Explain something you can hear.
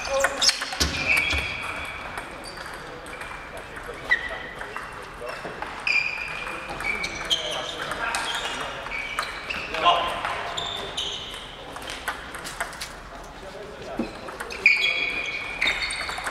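Sports shoes squeak on the floor.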